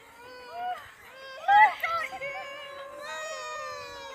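Young children sing and shout along.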